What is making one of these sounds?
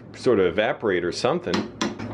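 A spoon scrapes inside a pot.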